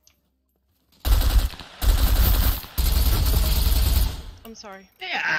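A rifle fires loud, rapid bursts of shots.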